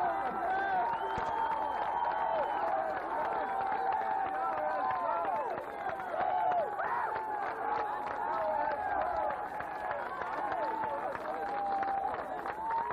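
A large crowd of young men and women cheers and shouts loudly outdoors.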